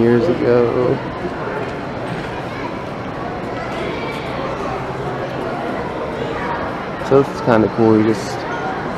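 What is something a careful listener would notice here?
A moving walkway hums steadily in a large echoing hall.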